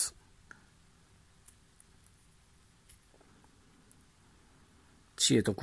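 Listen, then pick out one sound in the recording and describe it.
Small metal fittings click faintly between fingers.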